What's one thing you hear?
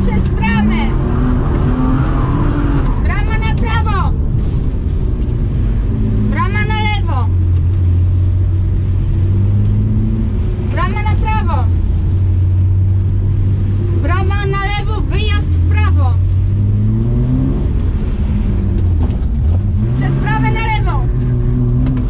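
Tyres squeal on wet tarmac in short bursts.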